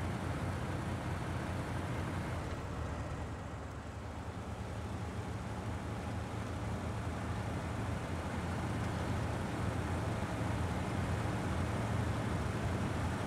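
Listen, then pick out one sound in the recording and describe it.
A heavy truck engine rumbles steadily and strains as it climbs.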